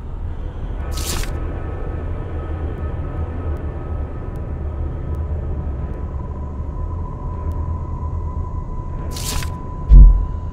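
A paper page flips over.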